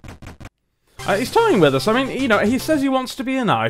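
A bright chiptune fanfare plays loudly.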